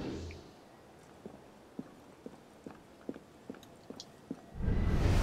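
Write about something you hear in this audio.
Footsteps tap on roof tiles.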